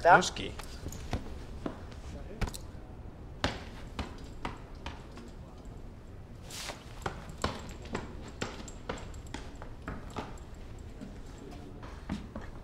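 A ball thumps repeatedly against a foot.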